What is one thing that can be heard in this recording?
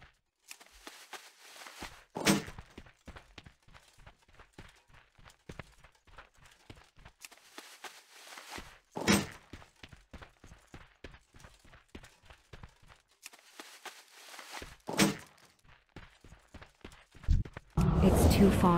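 Footsteps patter on dry ground.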